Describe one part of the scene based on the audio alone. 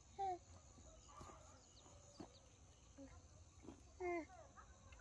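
A baby babbles briefly close by.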